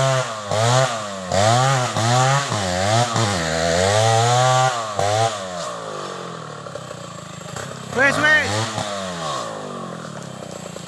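A chainsaw revs up and down while cutting wood.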